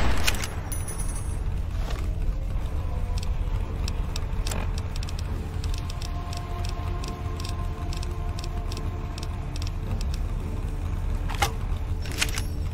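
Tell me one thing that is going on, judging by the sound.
Menu selections click softly, one after another.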